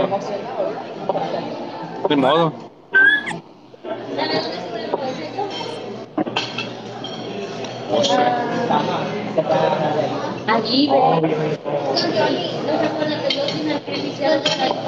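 A young woman talks and laughs with animation through a phone microphone.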